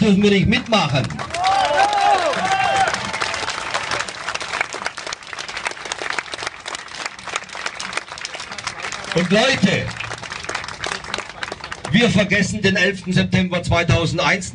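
A man speaks loudly through a microphone and loudspeaker outdoors.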